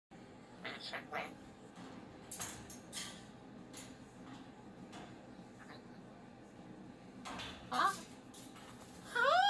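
A cockatoo's claws and beak clink against metal cage bars as it climbs.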